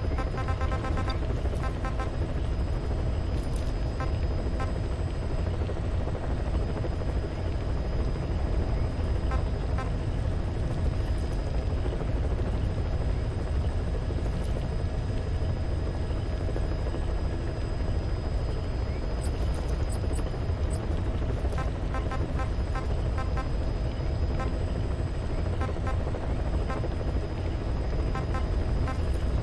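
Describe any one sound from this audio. Short electronic beeps chirp now and then as menu selections change.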